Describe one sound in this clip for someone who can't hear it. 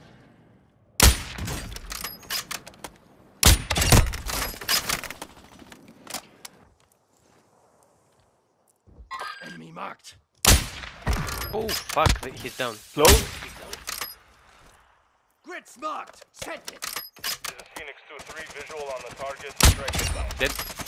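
Sniper rifle shots crack loudly, one at a time.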